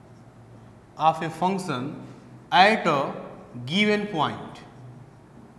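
A man speaks calmly nearby, as if explaining.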